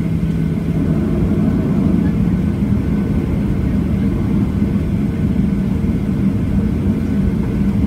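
Aircraft wheels roll over the taxiway.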